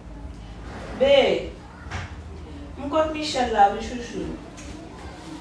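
A young woman speaks into a phone close by.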